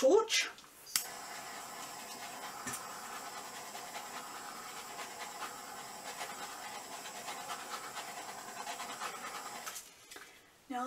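A heat gun blows with a steady whirring hiss.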